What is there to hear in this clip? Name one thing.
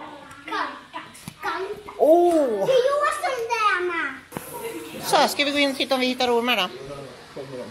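A young child talks and squeals excitedly up close.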